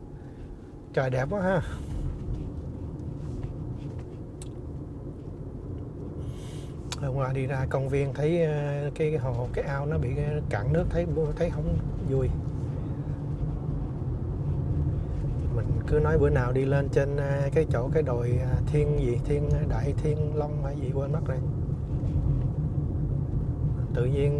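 A man talks calmly and close by, inside a car.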